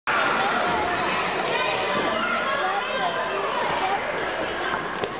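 Young children shout and chatter in a large echoing gym.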